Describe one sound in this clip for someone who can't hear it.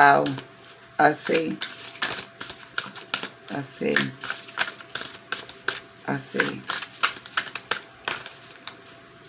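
Playing cards riffle and slap as a deck is shuffled.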